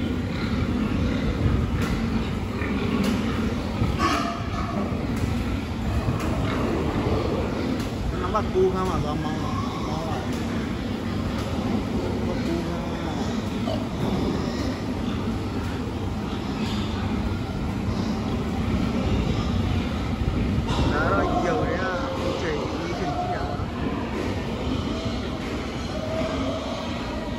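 Many pigs grunt and squeal throughout.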